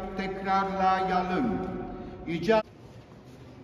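A man chants a prayer aloud in an echoing hall.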